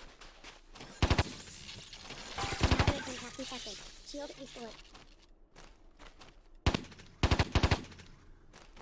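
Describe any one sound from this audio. Gunfire rattles in short, sharp bursts.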